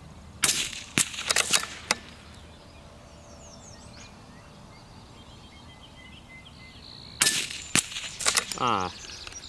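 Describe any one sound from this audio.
A bullet strikes a hanging steel target with a distant clang.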